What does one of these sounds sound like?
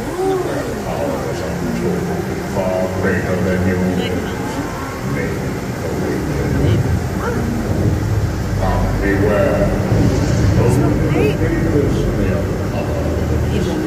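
Water sprays and hisses steadily from a fountain outdoors.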